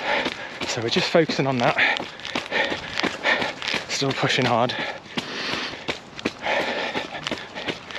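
A man talks close to the microphone, a little out of breath.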